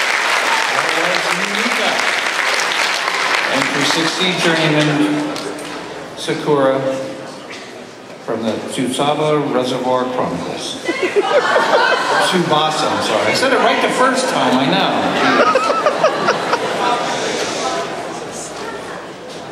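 A man speaks into a microphone, heard over loudspeakers in a large hall.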